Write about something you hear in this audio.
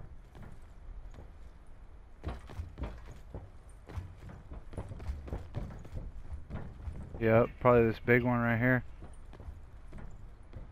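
Footsteps tap on a hard rooftop.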